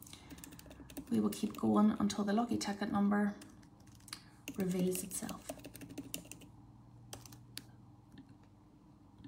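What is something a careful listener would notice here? Fingers tap quickly on laptop keys.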